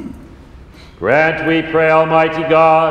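A man chants loudly in a reverberant room.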